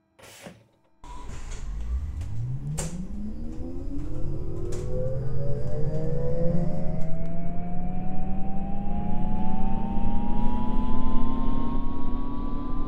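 A bus engine revs up and accelerates steadily, its pitch rising.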